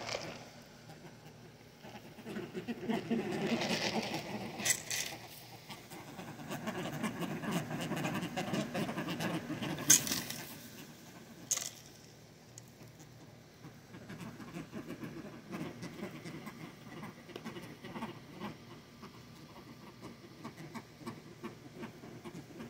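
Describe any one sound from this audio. Birds peck and rustle in short grass close by.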